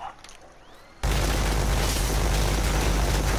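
A heavy machine gun fires in a rapid, unbroken stream.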